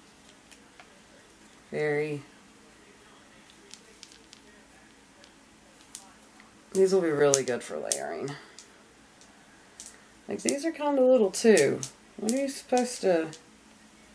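Beads and pendants clink softly as a woman handles them.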